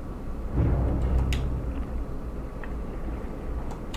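A metal lever clunks down.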